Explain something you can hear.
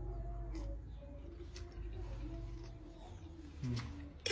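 A young man slurps noodles.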